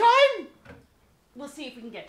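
A woman exclaims briefly.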